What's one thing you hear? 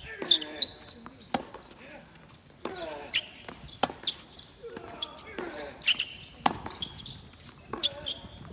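A tennis racket strikes a ball.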